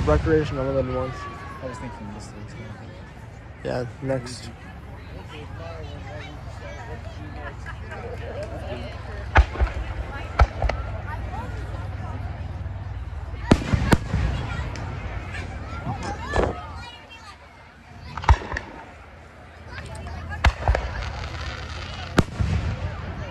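Aerial firework shells burst with sharp booms in the distance outdoors.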